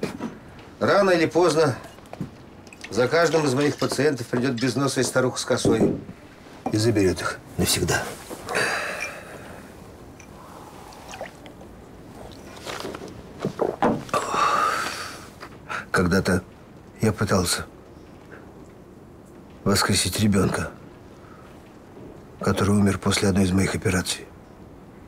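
A middle-aged man speaks slowly and gravely, close by.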